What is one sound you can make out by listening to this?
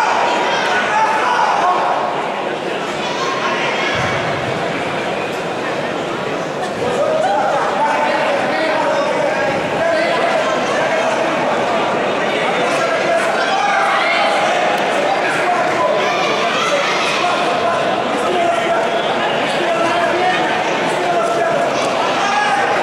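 Spectators shout and cheer loudly around the ring.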